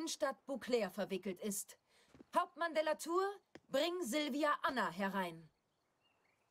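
A woman speaks calmly and with authority, close by.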